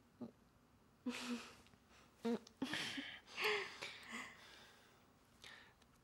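A man laughs softly close by.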